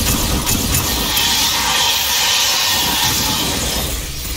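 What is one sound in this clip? An explosion roars and crackles.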